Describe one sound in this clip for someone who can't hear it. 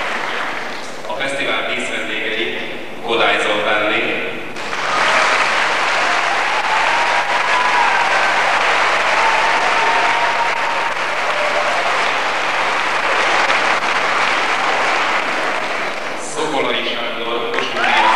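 An elderly man announces through a loudspeaker in a large echoing hall.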